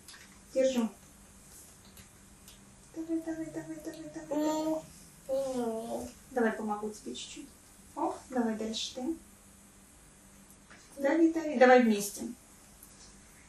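A woman speaks calmly and gently, close by.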